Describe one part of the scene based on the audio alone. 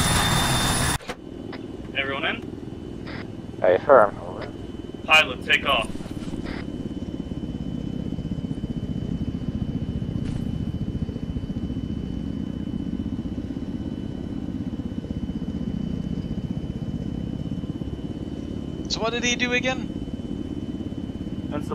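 A helicopter engine and rotors rumble steadily from inside the cabin.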